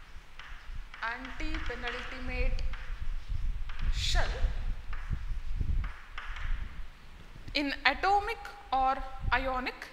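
A woman speaks calmly, as if teaching.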